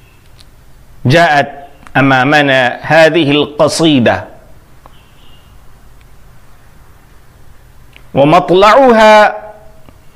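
A man recites verses slowly and melodiously, close to a microphone.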